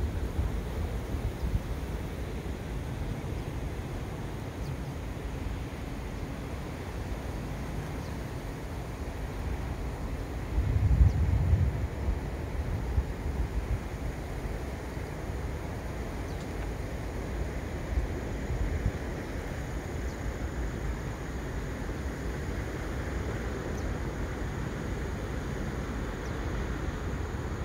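Wind gusts across the microphone outdoors, with a stronger gust partway through.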